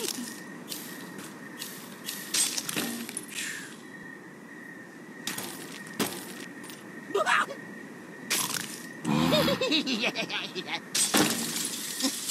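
Wooden blocks and ice crash and shatter.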